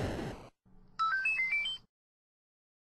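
A short rising electronic jingle plays from a video game.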